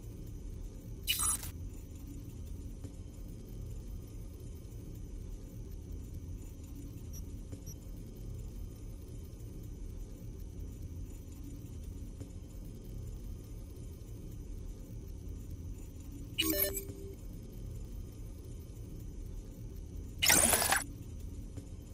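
Short electronic whooshes sound now and then as game menus open and change.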